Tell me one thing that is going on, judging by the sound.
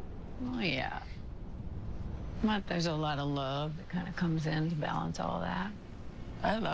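A young woman speaks softly and warmly, close by.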